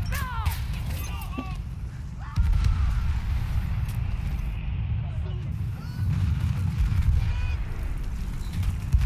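Explosions rumble and boom heavily.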